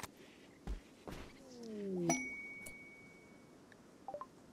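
A game alert chime sounds with a low falling tone.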